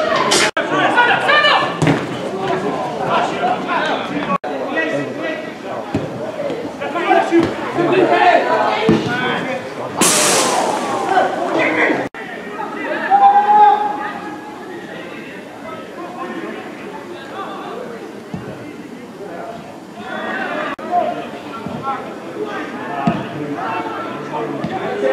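Young men shout and call out across an outdoor pitch.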